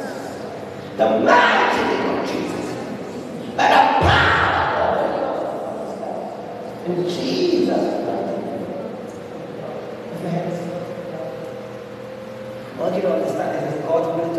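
A man prays aloud loudly and fervently in an echoing hall.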